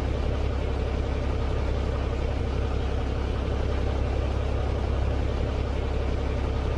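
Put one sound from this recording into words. A truck engine rumbles steadily at idle.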